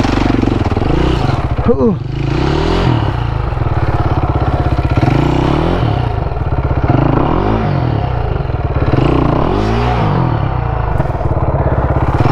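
Wheels churn and spin in loose mud and leaves.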